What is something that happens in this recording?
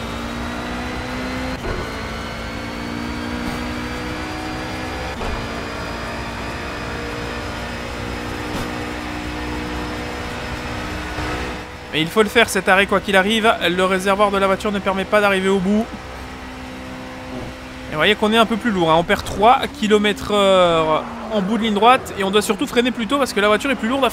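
A racing car engine roars at high speed.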